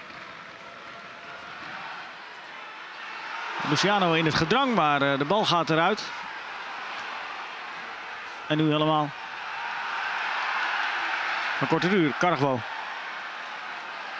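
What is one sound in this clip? A large stadium crowd roars and murmurs steadily, swelling at times.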